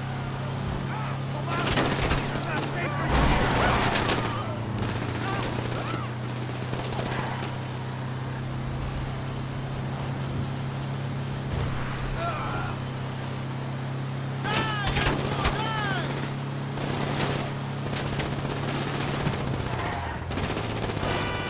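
Tyres roll on asphalt.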